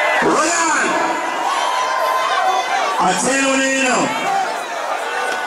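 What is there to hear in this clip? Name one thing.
A crowd of young people shouts and cheers outdoors.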